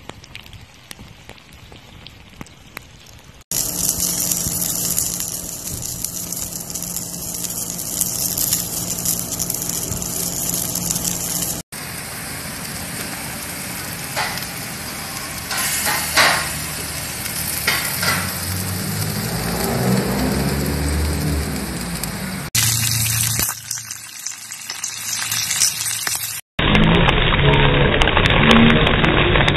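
Food sizzles in a hot pan over a fire.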